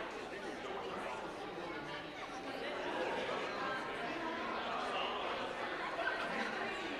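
Many men and women chatter quietly in a large echoing hall.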